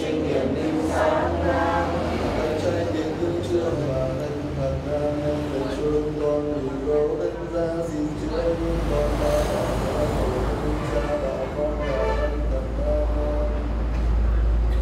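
An elderly man speaks in a slow, chanting voice through a microphone and loudspeaker.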